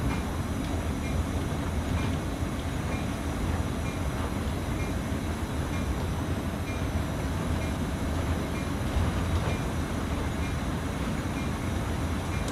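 A train engine rumbles steadily from inside the cab.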